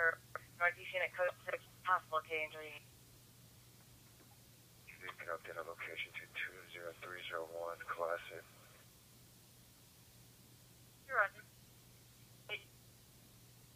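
Short radio transmissions play through a small, tinny loudspeaker, with pauses between them.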